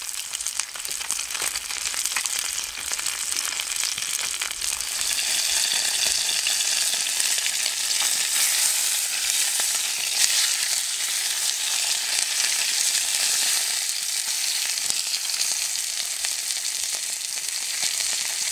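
Fish sizzles loudly in a hot pan.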